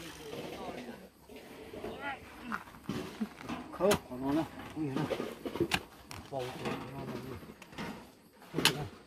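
A hoe scrapes and chops into dry soil.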